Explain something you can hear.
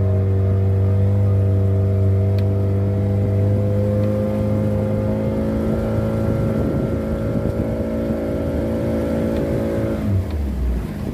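An outboard motor drones steadily close by, then cuts out.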